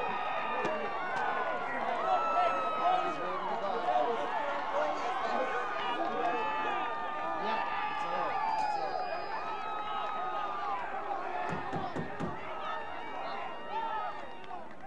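Young men cheer and shout in celebration outdoors.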